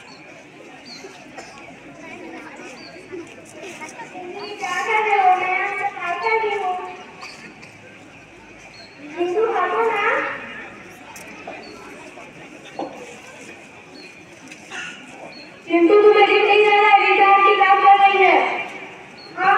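A crowd of children murmurs in the background.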